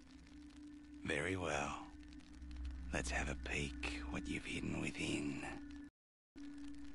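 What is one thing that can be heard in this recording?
A man speaks in a low, gruff voice.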